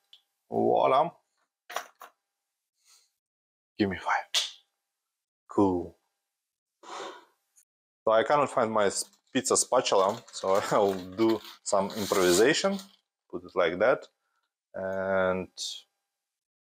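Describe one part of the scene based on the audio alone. A man talks calmly and close by, with pauses.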